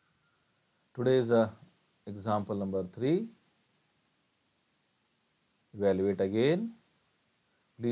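A man speaks calmly through a microphone, in short bursts.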